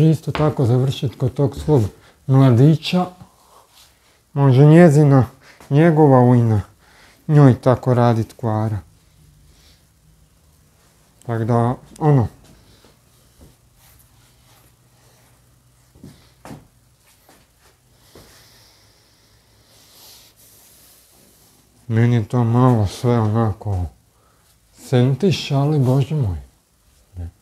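A man talks calmly and close by, in short bursts with pauses.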